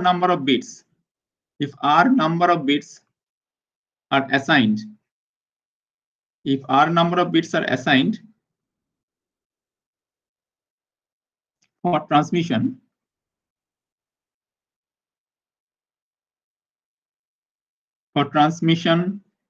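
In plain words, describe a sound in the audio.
A man speaks calmly through a microphone, in short phrases with long pauses.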